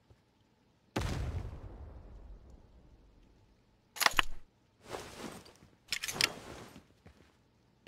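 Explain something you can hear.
A rifle fires with a loud, echoing crack.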